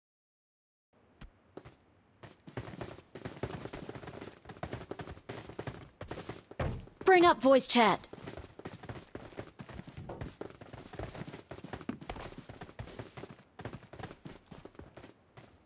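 Footsteps run quickly over grass and gravel.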